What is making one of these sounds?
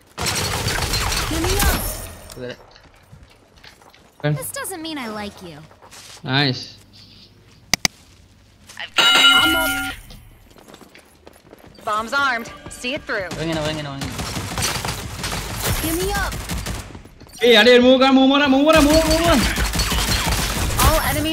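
A sniper rifle fires with a sharp crack.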